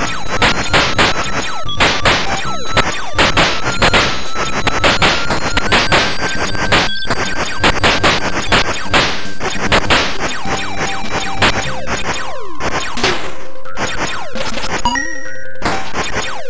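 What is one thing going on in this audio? Rapid electronic shots fire over and over.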